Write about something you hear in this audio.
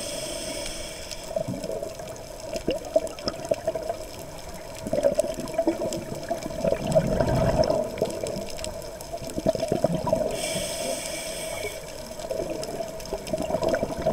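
Muffled water swishes and gurgles all around, heard from underwater.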